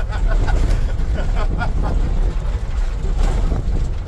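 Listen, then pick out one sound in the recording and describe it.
A vehicle engine rumbles as tyres roll over a dirt road.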